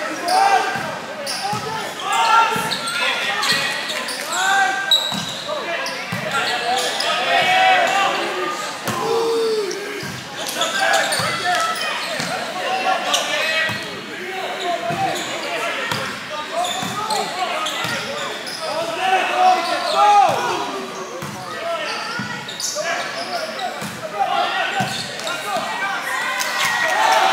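A large crowd chatters and shouts, echoing in a big hall.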